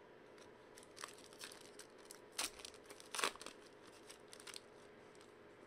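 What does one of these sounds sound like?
A foil wrapper crinkles as a card pack is torn open.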